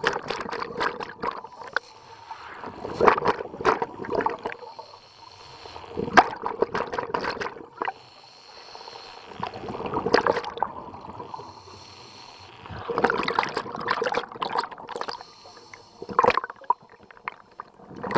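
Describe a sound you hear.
Air bubbles rush and gurgle out underwater in bursts.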